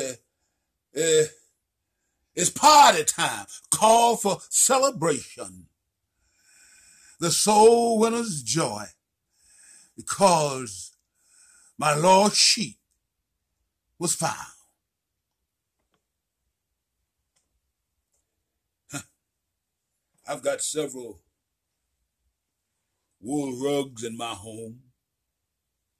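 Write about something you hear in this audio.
An elderly man speaks with animation close to the microphone, in bursts with pauses.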